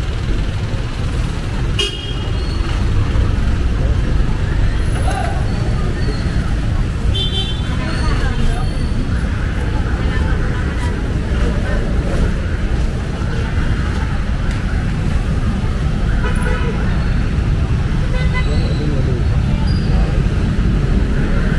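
Men and women talk faintly nearby.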